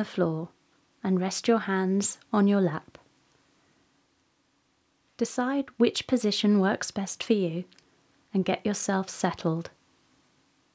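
A woman speaks warmly and calmly, close to a microphone.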